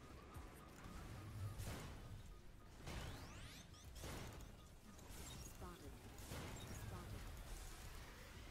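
Laser weapons fire in sharp, whooshing bursts.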